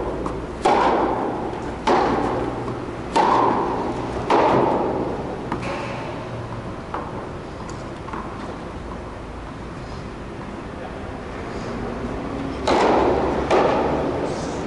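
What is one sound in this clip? Tennis balls are struck hard with a racket, echoing in a large hall.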